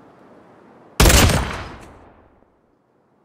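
A pistol fires a single shot in a video game.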